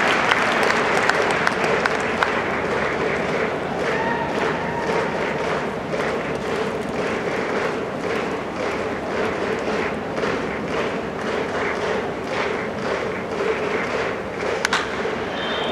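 A crowd claps and drums in a fast, steady rhythm.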